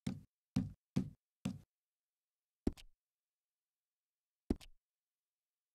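Short menu clicks sound one after another.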